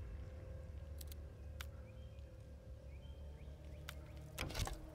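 Short electronic clicks sound as menu options change.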